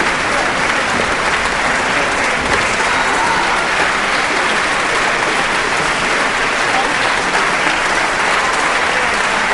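A large audience applauds steadily in a big echoing hall.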